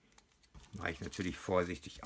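Scissors snip through a plastic wrapper.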